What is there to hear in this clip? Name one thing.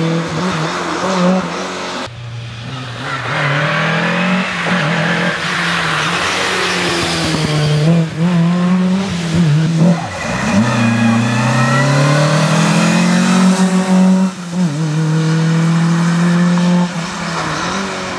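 Tyres hiss and splash on a wet gravel road.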